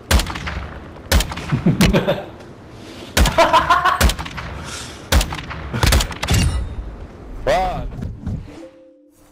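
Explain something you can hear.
A rifle fires loud sharp shots that echo outdoors.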